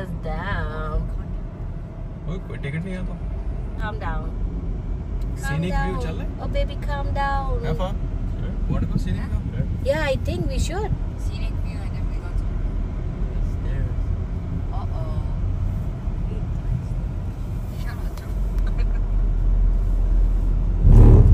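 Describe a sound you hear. A car engine hums with a steady low road rumble.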